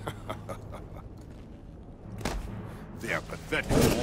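A man groans weakly in pain.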